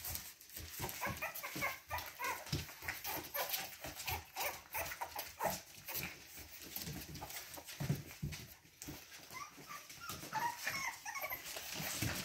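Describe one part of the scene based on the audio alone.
A puppy growls and yips playfully.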